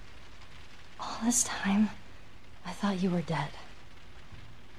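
A teenage girl speaks softly and earnestly nearby.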